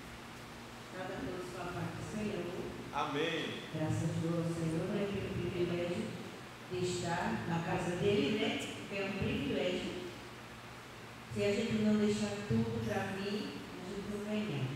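A woman speaks calmly into a microphone, heard through loudspeakers in an echoing hall.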